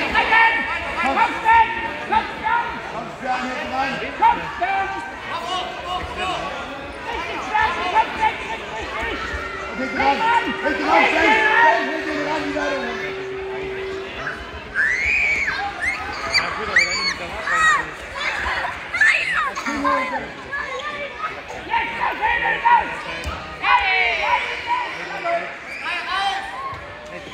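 Several adults and children shout encouragement loudly in an echoing hall.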